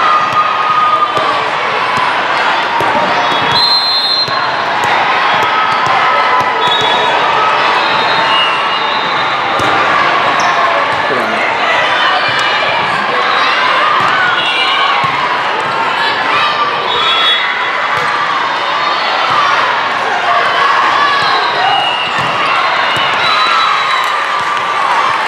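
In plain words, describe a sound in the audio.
A large crowd chatters and calls out, echoing through a big hall.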